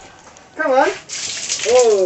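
Water splashes from a scoop.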